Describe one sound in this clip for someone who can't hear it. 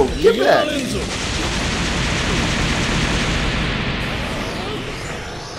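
A fiery blast roars in a video game.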